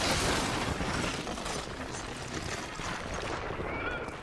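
Running footsteps patter on a rooftop.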